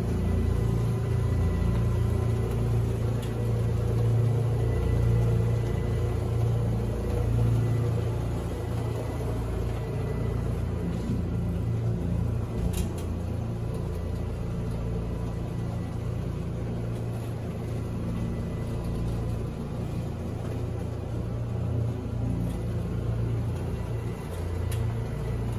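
A floor machine hums steadily as it scrubs a carpet.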